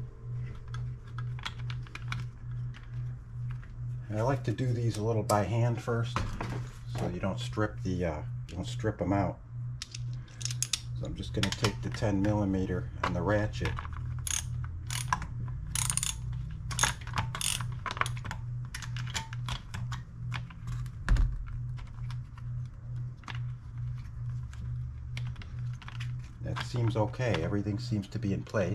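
A plastic engine cover clicks and rattles as it is handled.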